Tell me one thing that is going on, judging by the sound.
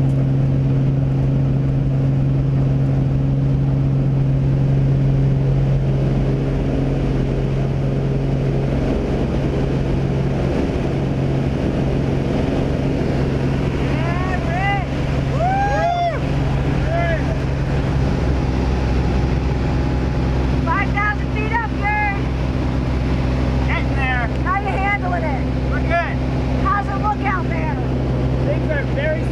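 A single-engine propeller plane drones.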